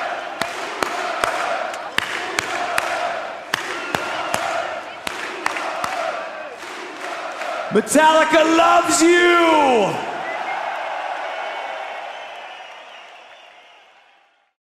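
A large crowd cheers and shouts loudly, then slowly fades away.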